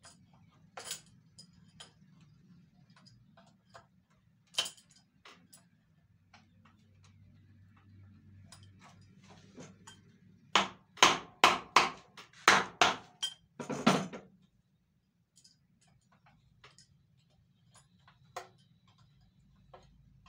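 Metal tools clink and tap against a metal motor casing.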